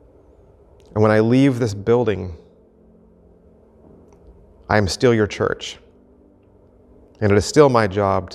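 A middle-aged man speaks with emphasis into a microphone, pausing between phrases.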